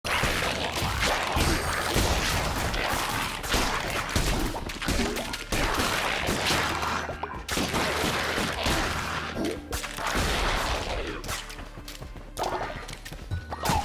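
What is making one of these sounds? A sword slashes at creatures with sharp hits and impacts.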